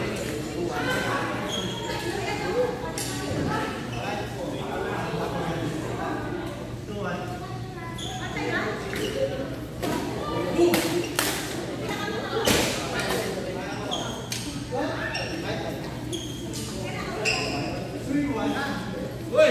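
Shuttlecocks are struck with rackets in sharp pops.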